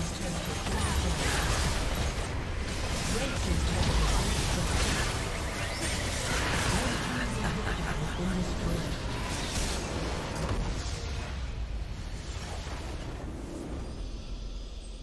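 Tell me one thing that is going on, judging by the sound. Video game explosions and spell effects crash and boom in a busy battle.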